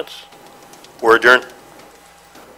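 A middle-aged man speaks briefly through a microphone.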